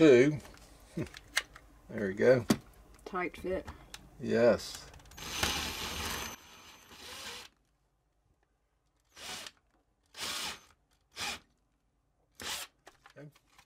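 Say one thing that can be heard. A cordless drill whirs in short bursts, boring into wood.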